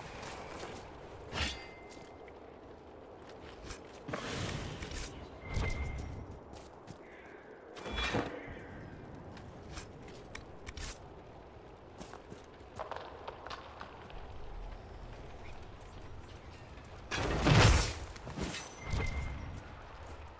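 Magic spells burst with loud whooshing blasts.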